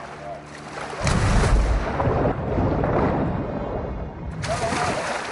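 A muffled underwater rush sounds as a swimmer dives beneath the surface.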